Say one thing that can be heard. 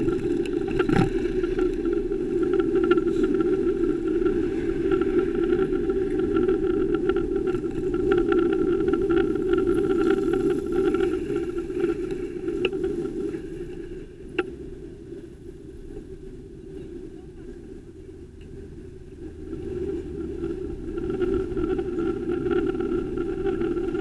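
Wind rushes steadily past close by, outdoors.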